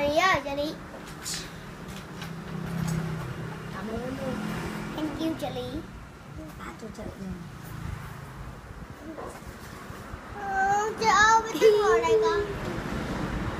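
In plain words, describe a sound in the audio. A young girl speaks and laughs close by.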